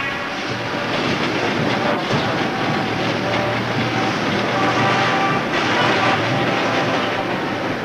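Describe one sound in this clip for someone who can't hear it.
A freight train rumbles across a bridge.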